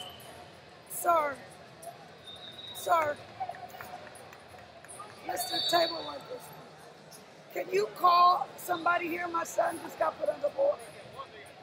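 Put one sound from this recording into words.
Men shout and call out from around a large echoing arena.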